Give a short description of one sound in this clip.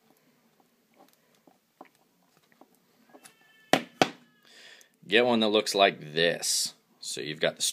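Small metal and plastic parts click and tap as fingers handle them.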